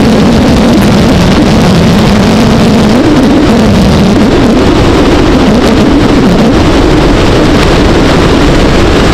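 A motorcycle engine hums steadily close by, rising and falling in pitch.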